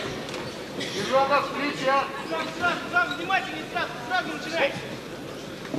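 A man gives brief commands in a large echoing hall.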